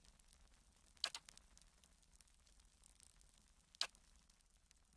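A game interface gives a short click as options are chosen.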